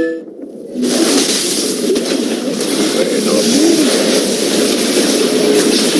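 Magic spells crackle and whoosh amid a clashing fantasy battle.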